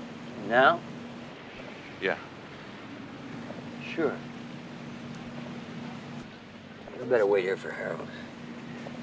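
A man speaks in short phrases nearby.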